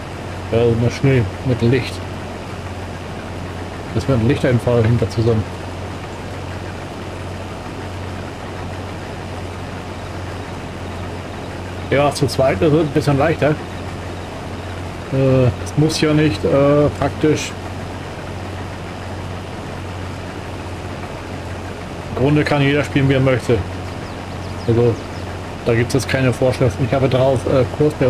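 A man talks calmly into a close microphone, in bursts.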